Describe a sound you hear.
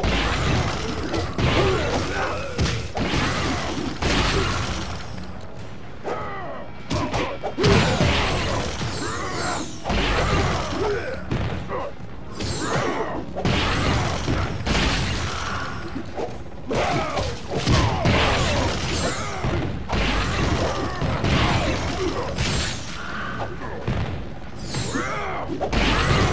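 Punches and kicks thud and smack in quick bursts.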